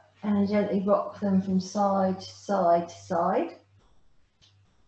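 A woman speaks calmly and clearly into a microphone nearby.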